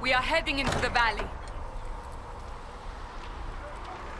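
Heavy wooden gate doors creak open.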